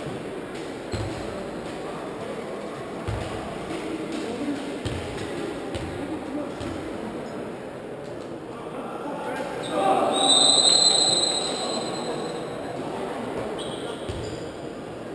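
A ball bounces on a wooden court.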